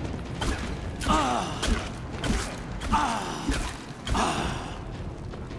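A beast roars and growls.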